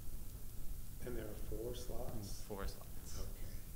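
A man speaks calmly in a small room.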